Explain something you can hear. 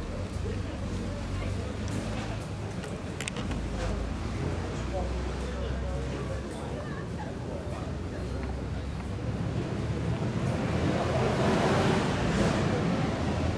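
A crowd of people chatters at a distance outdoors.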